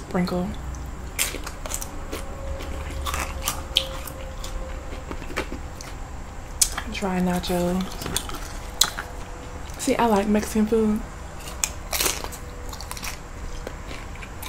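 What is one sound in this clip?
A young woman chews crunchy food close to a microphone.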